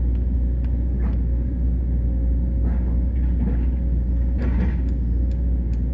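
An excavator bucket scrapes and digs into soil.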